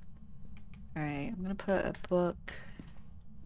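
A young woman speaks briefly and close to a microphone.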